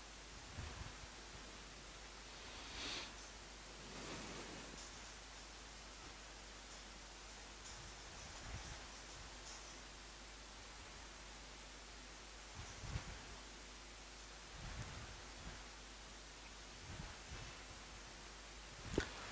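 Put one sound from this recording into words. A man speaks briefly now and then through a close microphone.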